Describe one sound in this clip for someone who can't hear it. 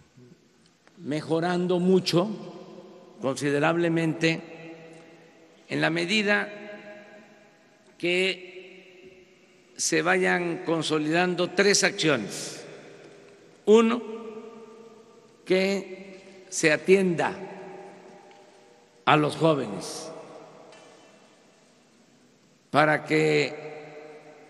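An older man speaks firmly through a microphone, in short phrases with pauses, echoing over loudspeakers.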